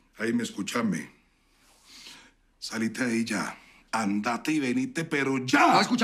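A middle-aged man speaks urgently into a phone, close by.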